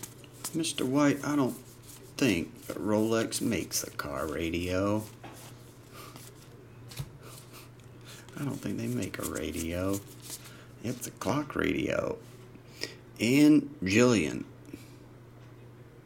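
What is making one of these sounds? Trading cards riffle and click as they are flipped through by hand.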